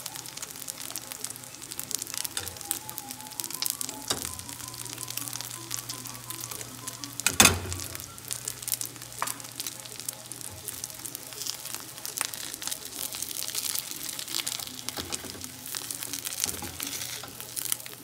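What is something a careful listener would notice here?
Egg sizzles and crackles in a hot pan.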